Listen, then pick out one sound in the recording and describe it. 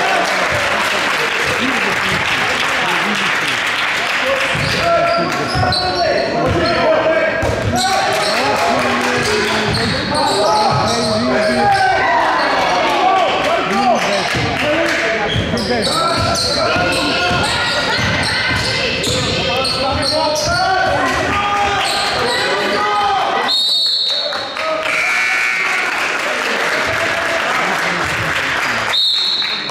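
Sneakers squeak sharply on a hard floor.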